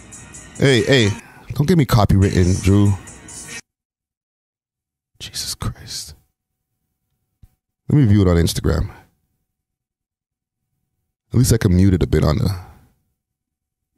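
A man talks into a close microphone with animation, in short bursts with pauses.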